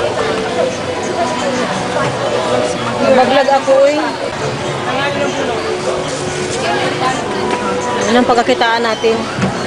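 A crowd of men and women chatter all around.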